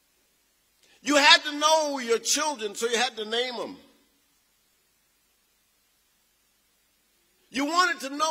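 A man speaks through a microphone and loudspeakers in a large echoing hall, pausing between phrases.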